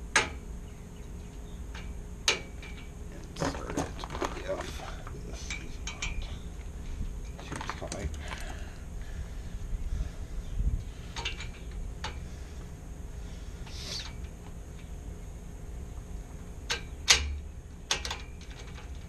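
A brass lock cylinder clicks and knocks against a metal gate.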